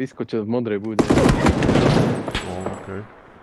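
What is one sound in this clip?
Rifle shots crack in a rapid burst.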